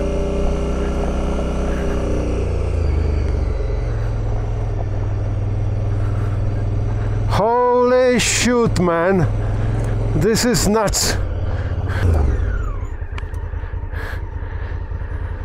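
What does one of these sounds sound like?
A motorcycle engine rumbles steadily.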